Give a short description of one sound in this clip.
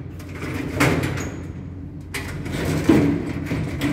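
A metal door swings open.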